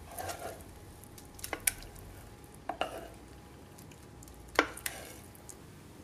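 Spoonfuls of oatmeal drop into a bowl with soft wet plops.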